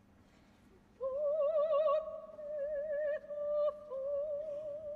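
A woman sings in a strong operatic voice, with vibrato, in a large hall.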